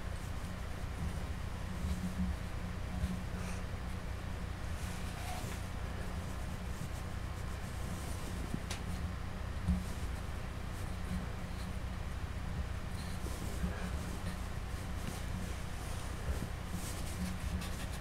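Hands press and knead soft clay.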